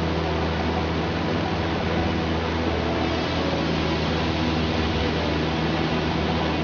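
A truck engine hums steadily at speed.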